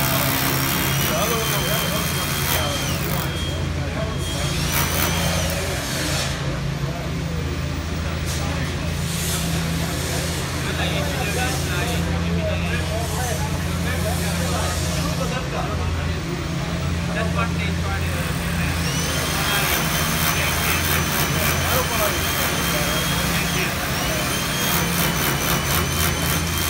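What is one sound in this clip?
A power drill whirs as it bores overhead.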